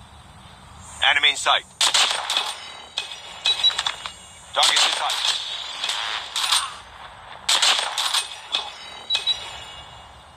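A sniper rifle fires loud gunshots.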